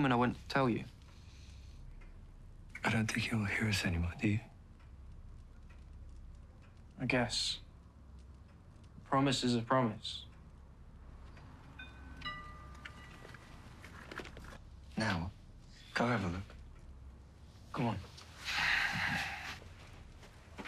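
A young man speaks softly, close by.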